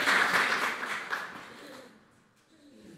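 An audience applauds in a hall.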